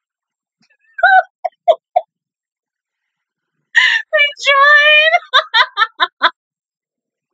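A young woman laughs loudly close to the microphone.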